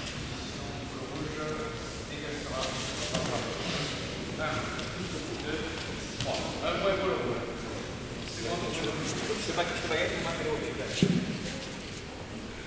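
Men shout and call out encouragement in a large echoing hall.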